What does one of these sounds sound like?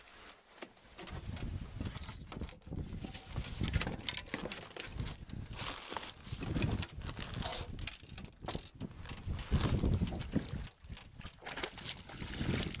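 Choppy water laps against a small boat.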